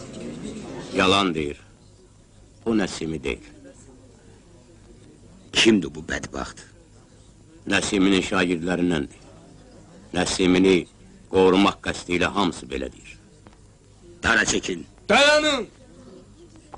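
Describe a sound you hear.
A man speaks loudly and sternly, with pauses, outdoors.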